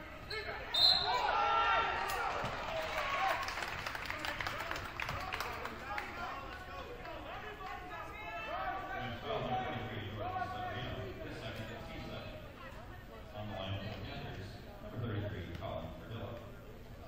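Young players and spectators call out and chatter in a large echoing gym.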